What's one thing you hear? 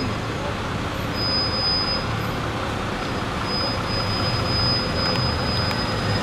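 A bus engine hums as the bus pulls away.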